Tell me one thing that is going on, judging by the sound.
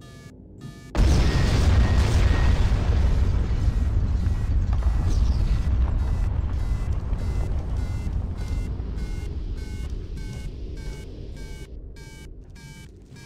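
A loud explosion booms and its deep rumble slowly fades.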